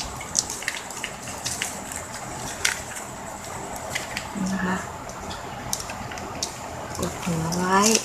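Plastic ribbon rustles and crinkles as hands fold it.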